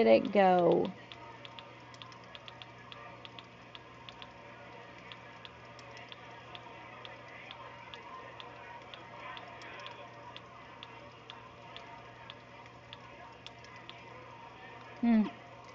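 Soft menu clicks tick quickly and evenly.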